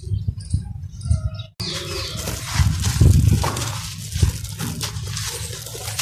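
Hands squeeze and crush a block of dry dirt.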